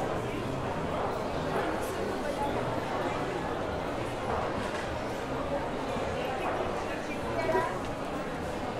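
A crowd of men and women chatters steadily in a large echoing hall.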